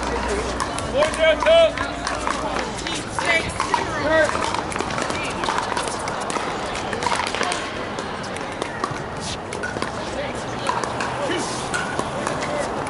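Paddles strike plastic balls with sharp pops, outdoors.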